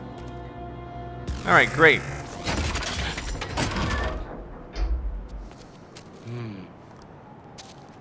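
A heavy metal safe door clicks, unlocks and swings open with a mechanical whir.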